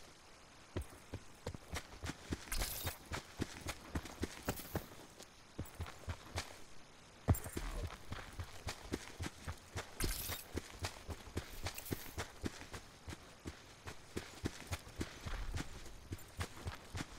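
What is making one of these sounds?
Footsteps run through tall grass.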